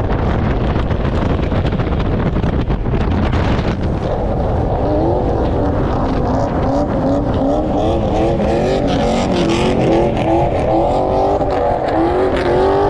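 A car engine hums and rumbles steadily.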